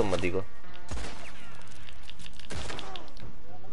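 A gunshot bangs nearby.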